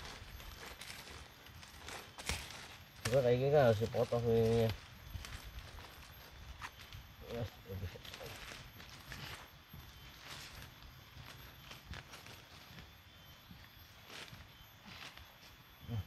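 A knife chops into soil and roots with dull knocks.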